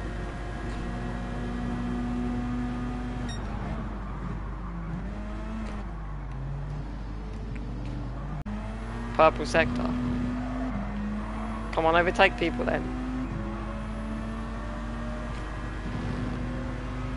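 A racing car engine drones steadily, its pitch dropping and rising with gear changes.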